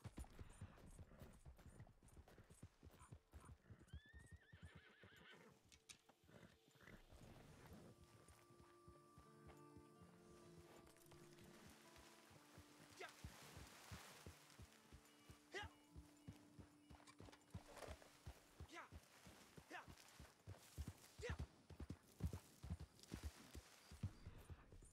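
Horse hooves clop steadily over dry ground.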